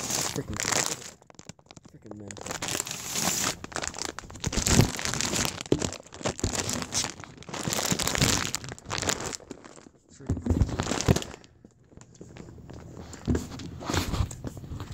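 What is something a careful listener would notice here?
A phone rustles and knocks against clothing close up.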